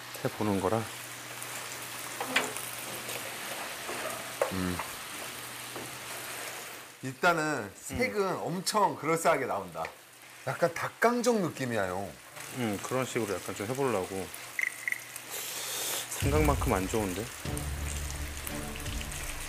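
Chicken pieces sizzle in hot sauce in a pan.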